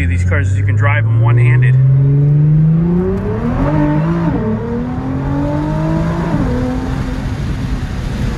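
A sports car engine revs up loudly and shifts through the gears.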